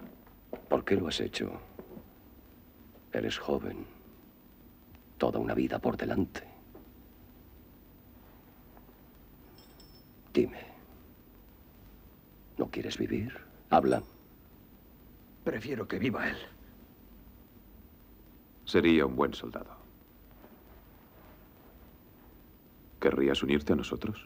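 A middle-aged man speaks slowly and sternly, close by.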